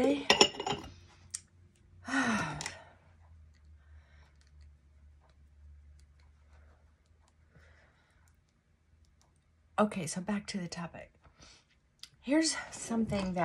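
A middle-aged woman talks calmly and close by.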